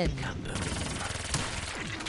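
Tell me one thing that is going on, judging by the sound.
A gun fires in bursts.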